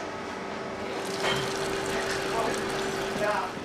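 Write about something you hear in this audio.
Liquid drains and splashes through a sieve.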